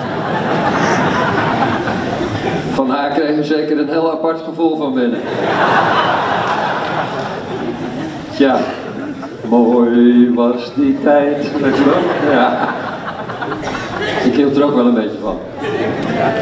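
A man laughs heartily nearby.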